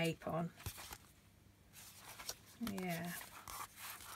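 Stiff paper rustles as a sheet is turned over.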